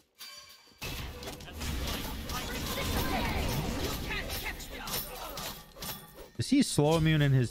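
Magic blasts crackle and whoosh during a fight.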